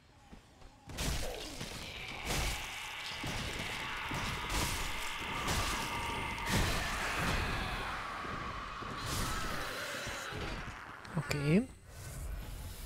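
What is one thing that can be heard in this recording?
Swords clash and slash in a loud fight.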